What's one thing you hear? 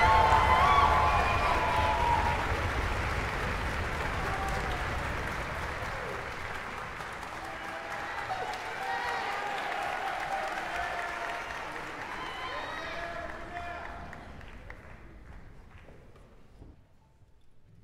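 An audience applauds loudly in a large hall, then the applause slowly fades away.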